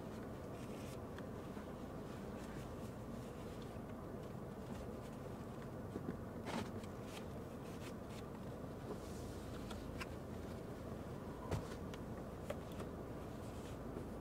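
Clothing rustles close by as someone shifts about.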